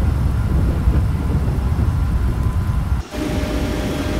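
The turbofan engines of a Boeing 737 roar in flight.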